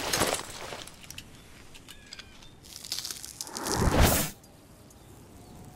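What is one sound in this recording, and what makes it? A young woman gasps and breathes heavily.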